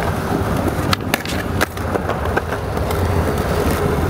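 A skateboard clacks as it lands a trick.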